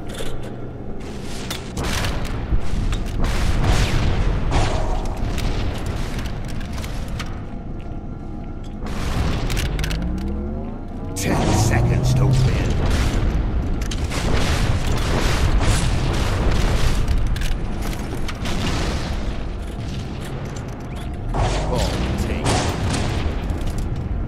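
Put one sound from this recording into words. Gunshots and explosions from a game ring out repeatedly.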